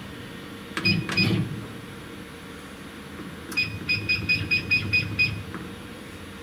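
A machine beeps in short repeated tones.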